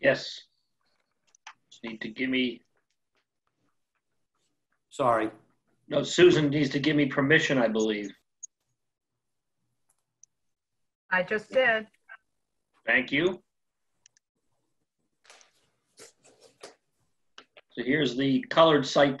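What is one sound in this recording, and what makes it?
Several men talk in turn over an online call.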